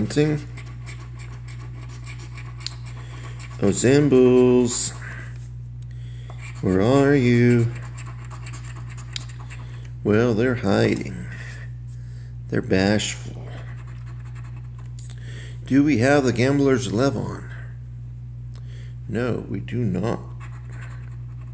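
A coin scratches across a scratch-off ticket.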